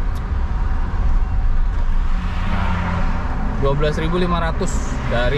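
A car engine hums low and steady, heard from inside the car.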